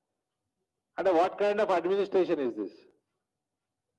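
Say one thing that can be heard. A man speaks calmly into a microphone at close range.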